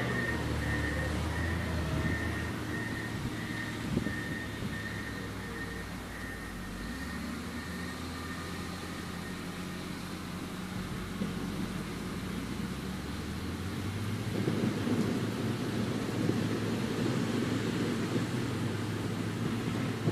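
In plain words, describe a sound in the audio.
Heavy earthmoving machines rumble and whine steadily at a distance.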